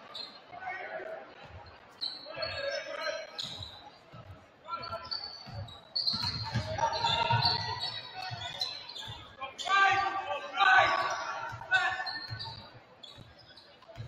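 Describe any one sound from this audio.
Sneakers squeak sharply on a hardwood basketball court.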